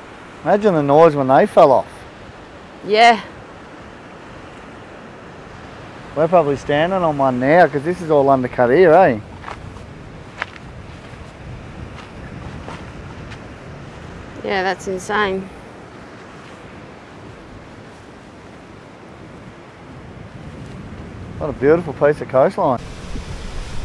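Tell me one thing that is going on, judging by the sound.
Waves wash against a rocky shore below.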